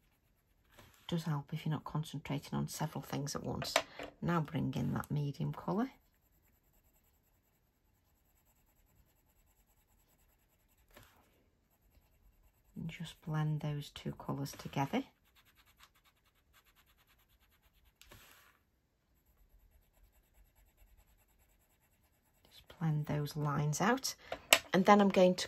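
A colored pencil scratches softly on paper.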